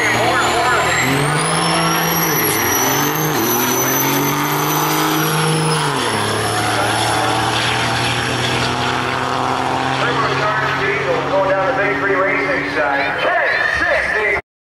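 A diesel truck roars off at full throttle, shifting up and fading into the distance.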